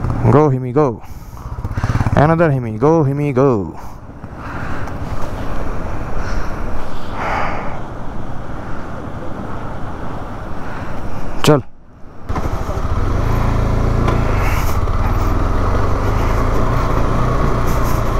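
Wind rushes past a rider outdoors.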